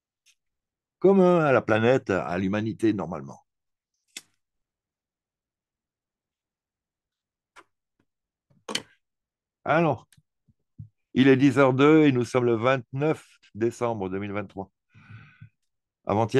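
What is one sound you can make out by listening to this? A man talks with animation close to a microphone, in short bursts with pauses.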